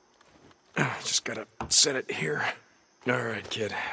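Boots clunk on ladder rungs.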